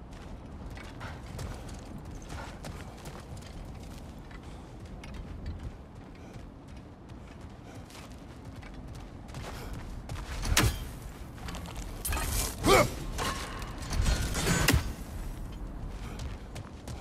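Footsteps crunch on snowy gravel.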